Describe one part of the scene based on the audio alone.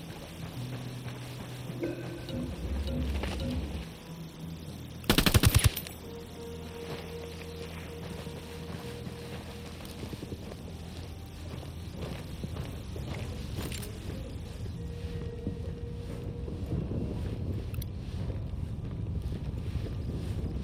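Footsteps crunch steadily on dirt and gravel.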